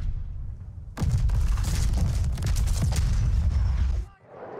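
Shells explode with loud, rumbling roars.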